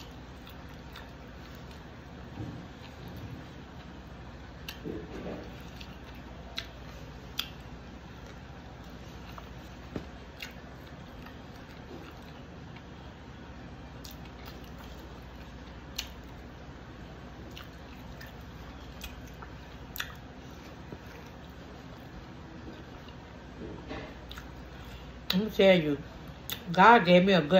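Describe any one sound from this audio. A plastic food container crinkles and clicks as fingers pick at food.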